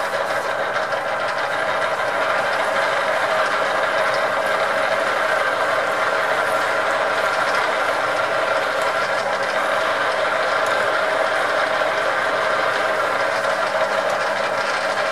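A metal lathe hums steadily as it spins.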